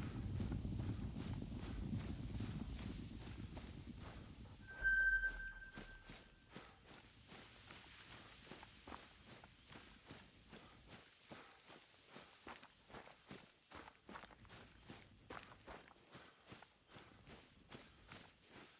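Footsteps swish steadily through dry grass.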